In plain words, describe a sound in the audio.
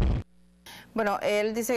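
A woman speaks calmly and clearly into a microphone.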